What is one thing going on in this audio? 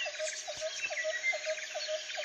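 Birds chirp and trill nearby.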